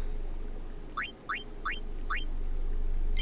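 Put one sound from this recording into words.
Short electronic menu blips chirp several times.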